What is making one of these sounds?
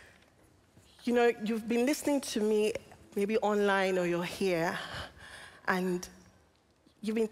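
A woman speaks with passion through a microphone.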